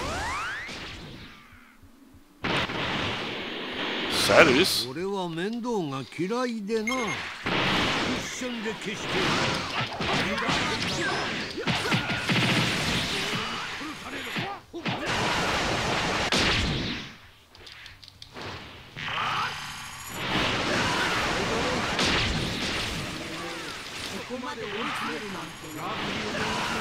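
Energy blasts whoosh and roar loudly.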